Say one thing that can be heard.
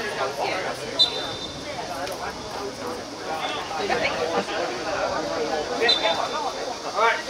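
A referee's whistle blows short sharp blasts.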